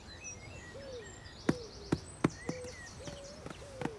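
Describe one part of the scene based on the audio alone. A small ball drops and bounces softly on grass.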